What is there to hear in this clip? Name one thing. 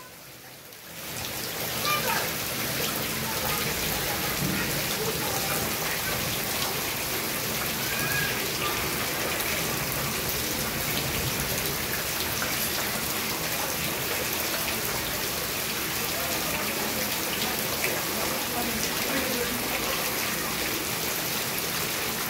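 Steady rain falls and patters outdoors.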